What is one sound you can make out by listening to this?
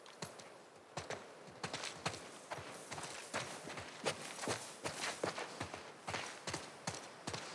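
Tall dry grass rustles as someone pushes through it.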